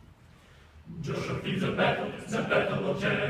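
A large mixed choir sings together in a reverberant hall.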